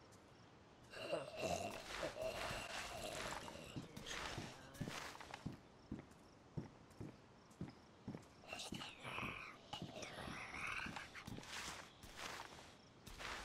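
Clothing and gear scrape softly as a soldier crawls.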